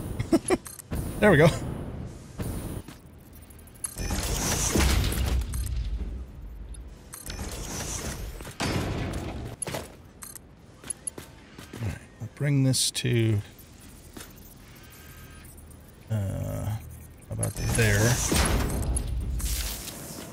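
A man talks into a microphone in short bursts.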